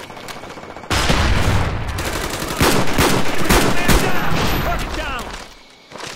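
A rifle fires several loud shots.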